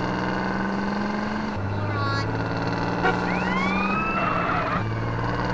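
A pickup truck's engine hums steadily as it drives.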